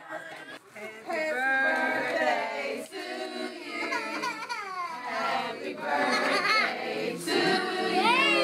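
A group of women and children sing together nearby, loud and lively.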